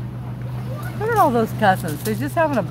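Children shout and squeal while playing in the water nearby, outdoors.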